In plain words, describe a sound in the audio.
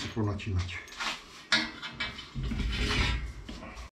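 A metal bar scrapes and clanks against metal.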